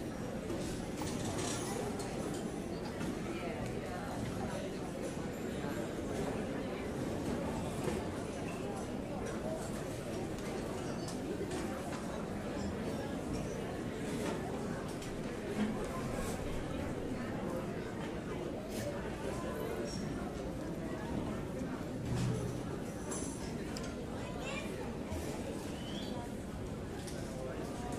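A crowd of adults and children chatters in a large echoing hall.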